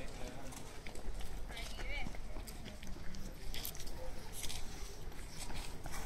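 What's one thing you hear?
Footsteps slap on pavement as a man runs past.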